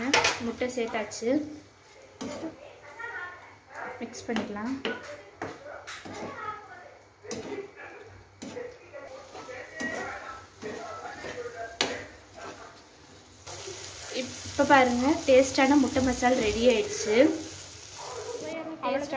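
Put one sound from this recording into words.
A metal spatula scrapes and clatters against a frying pan.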